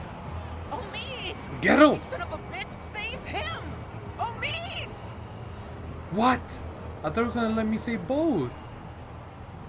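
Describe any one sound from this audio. A woman speaks in a tense voice.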